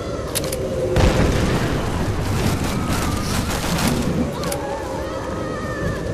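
Strong wind blows and howls.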